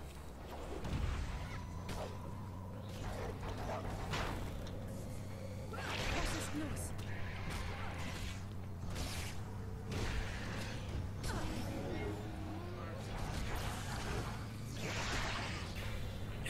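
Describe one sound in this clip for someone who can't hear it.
Sword blows strike with sharp clangs.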